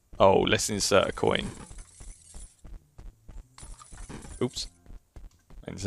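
Coins clink into an arcade machine's slot.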